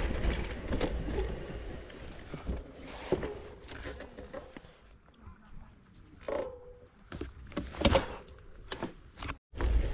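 Bicycle wheels rattle and knock over wooden boards.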